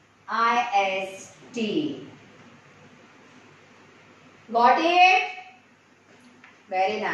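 A woman speaks clearly and calmly, close by, as if teaching.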